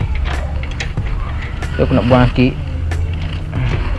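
A wrench clinks against metal bolts.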